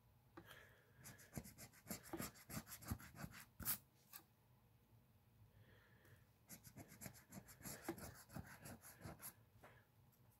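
A coin scrapes rapidly against a scratch card.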